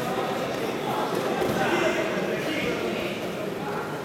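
A judo fighter is thrown and lands with a thud on the mat.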